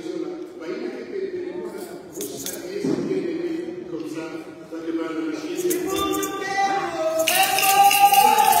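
An elderly man speaks with animation into a microphone in an echoing hall.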